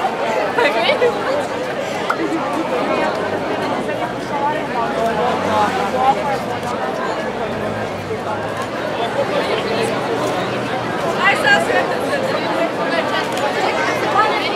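A large crowd of young people chatters and talks loudly outdoors.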